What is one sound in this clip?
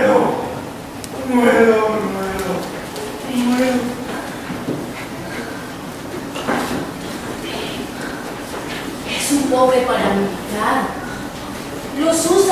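A man speaks loudly and dramatically from a distance in an echoing room.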